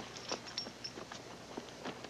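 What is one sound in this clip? A young woman speaks quietly.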